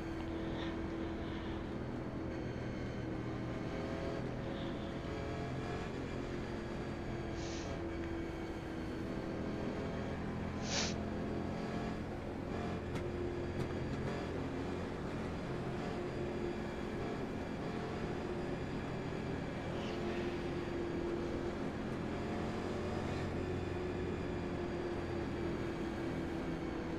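Other race cars' engines drone close by.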